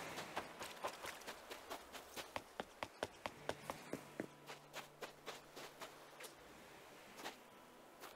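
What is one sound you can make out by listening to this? Footsteps patter quickly on sand and rock.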